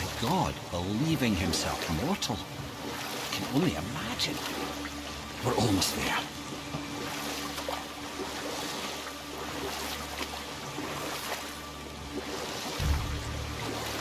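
Water laps against a wooden boat.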